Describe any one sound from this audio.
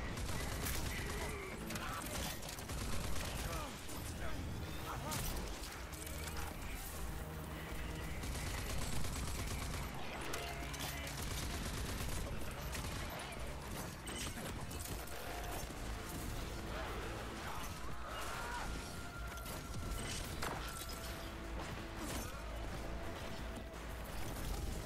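Gunfire from a video game rattles in rapid bursts.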